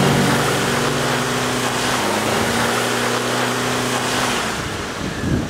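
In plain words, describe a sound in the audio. An engine roars steadily under load.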